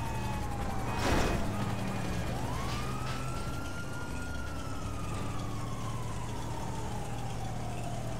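A van's engine drones as it drives along a road.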